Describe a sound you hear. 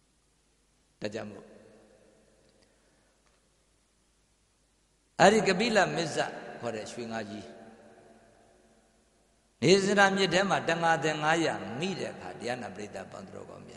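A man chants slowly in a low, wavering voice through a microphone, echoing in a reverberant room.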